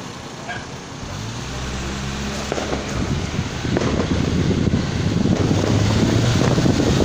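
A car engine rumbles and grows louder as the car drives along.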